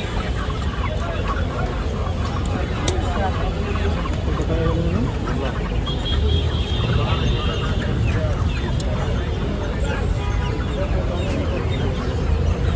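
Chickens cluck nearby.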